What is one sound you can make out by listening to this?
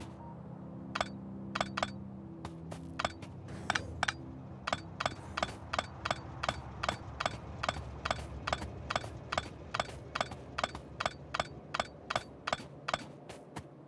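Footsteps tap quickly and evenly on hard ground.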